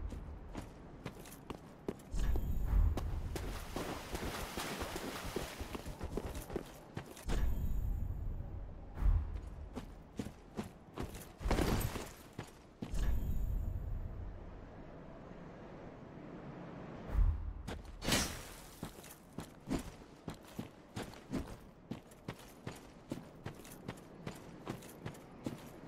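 Armoured footsteps clank on stone at a steady walking pace.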